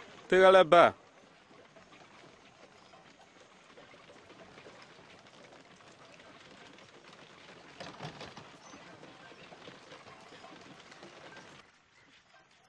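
A wooden cart rumbles along, pulled by oxen.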